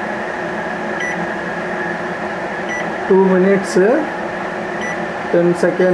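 A microwave keypad beeps briefly as buttons are pressed.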